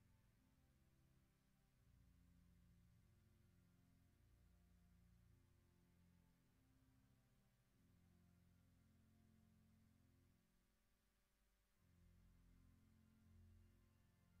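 A congregation sings a slow hymn.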